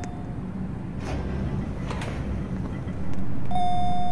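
An elevator door slides open.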